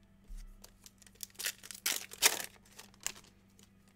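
Plastic wrapping crinkles and tears as a pack is opened close by.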